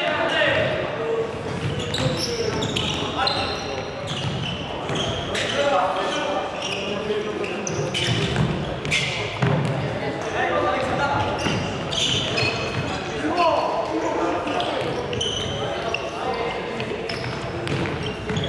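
A ball thumps on the floor.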